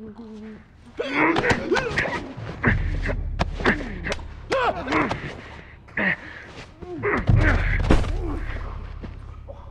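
Bodies scuffle and thud in a close struggle.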